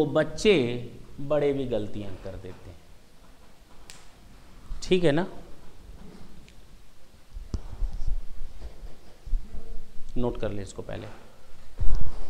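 A man lectures with animation through a clip-on microphone, in a small echoing room.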